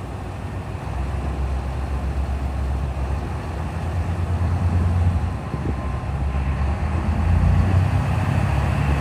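A diesel train engine revs up and pulls away.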